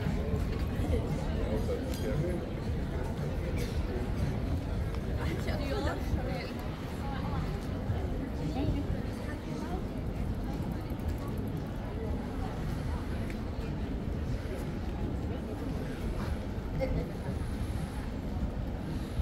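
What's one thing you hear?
A crowd of men and women murmurs in distant, overlapping conversation outdoors.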